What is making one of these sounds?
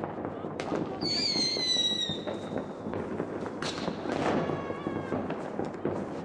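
A firework whistles shrilly as it shoots up.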